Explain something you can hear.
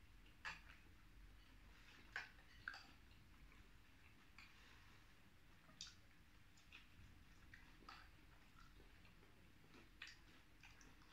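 Two men chew and smack their lips loudly, close to a microphone.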